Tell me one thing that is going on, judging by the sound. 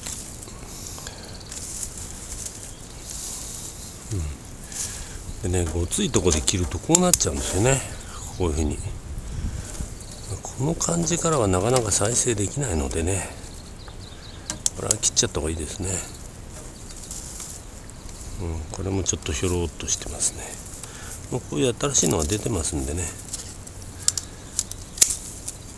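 Leafy branches rustle as hands move through them.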